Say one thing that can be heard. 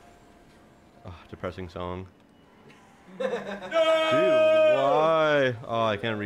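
Young men shout and cheer excitedly nearby.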